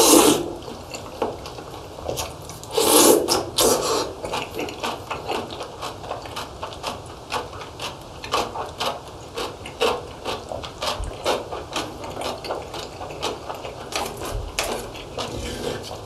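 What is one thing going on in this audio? A young man chews food noisily and wetly, close to a microphone.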